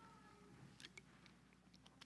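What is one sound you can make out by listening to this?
A man sips water from a bottle.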